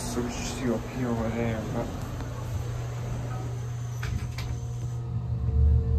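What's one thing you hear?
Elevator doors slide shut.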